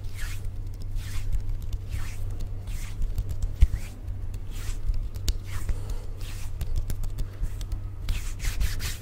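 Fingers tap and click close to a microphone.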